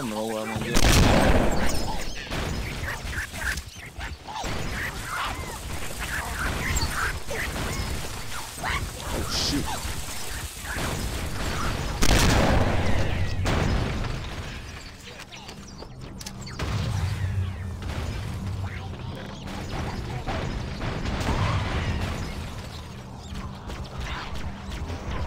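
Energy weapons fire and zap in rapid bursts.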